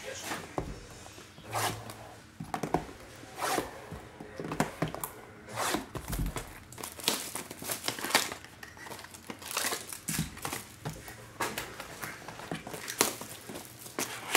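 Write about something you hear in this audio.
Cardboard packs rustle and crinkle as hands handle them.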